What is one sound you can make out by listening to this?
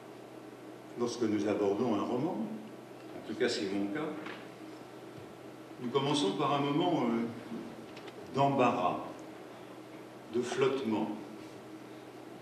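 A middle-aged man speaks calmly and slowly into a microphone, with long pauses.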